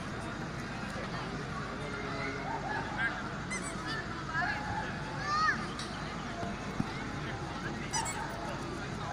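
A crowd of spectators chatters throughout in a large open space.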